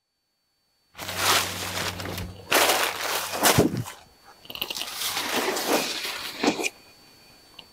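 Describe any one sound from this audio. Silky fabric rustles as it is lifted and spread out.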